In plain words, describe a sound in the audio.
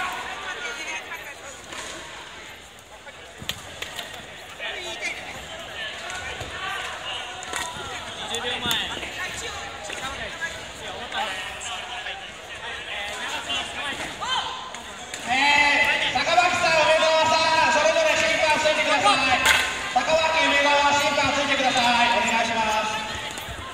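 Many people talk in the background of a large echoing hall.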